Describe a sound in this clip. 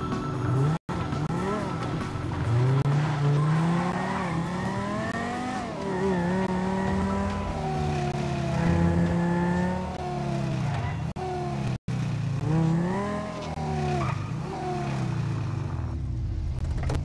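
A car engine revs and roars as it speeds along.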